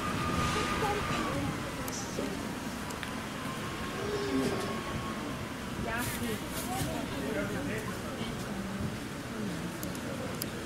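A young woman talks casually nearby outdoors.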